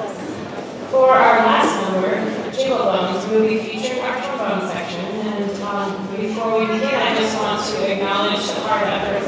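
A woman sings through a microphone over loudspeakers.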